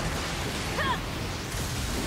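An explosion booms.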